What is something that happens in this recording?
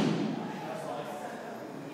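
A body thuds onto a padded mat.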